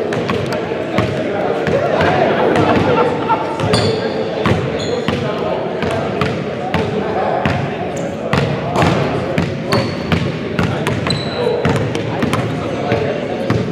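A crowd of people talks in the distance in an echoing hall.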